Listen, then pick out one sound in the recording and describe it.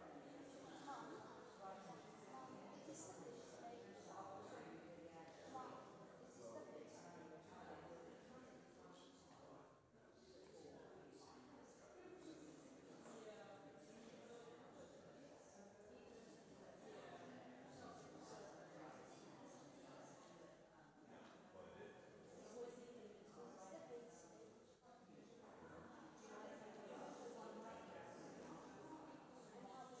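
Many people chat softly among themselves in a large echoing hall.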